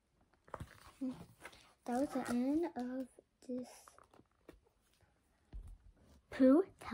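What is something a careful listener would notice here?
A young girl speaks close by, reading out with animation.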